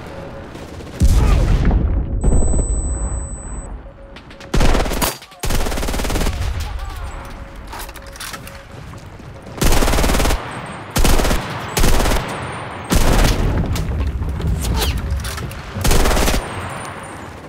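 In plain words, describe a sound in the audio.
A submachine gun fires in loud bursts.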